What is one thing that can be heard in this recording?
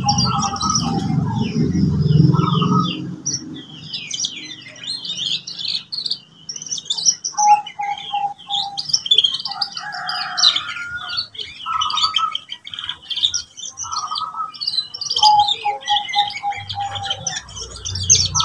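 A canary sings a long, lively song of trills, chirps and warbles close by.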